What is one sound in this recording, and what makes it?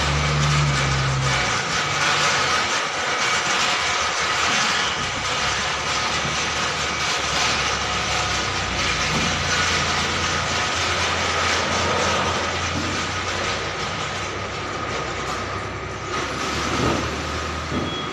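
A heavy truck engine rumbles as a truck drives slowly by.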